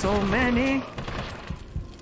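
A gun fires.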